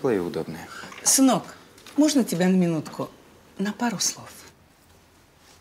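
An older woman speaks softly up close.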